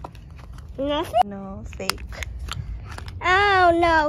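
A plastic egg clicks open.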